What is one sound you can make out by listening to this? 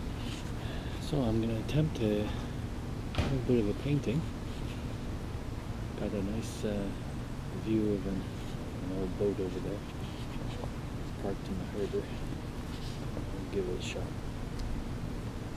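An elderly man talks calmly and close by.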